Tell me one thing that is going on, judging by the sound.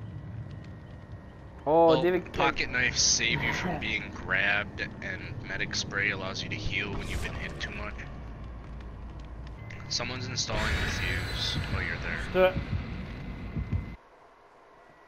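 A campfire crackles.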